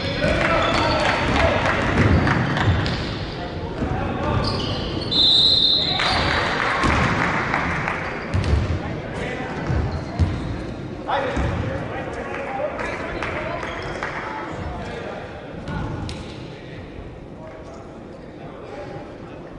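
A crowd of children chatters loudly, echoing through a large hall.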